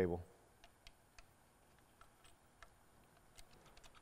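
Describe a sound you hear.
Small metal parts click softly as knobs are turned.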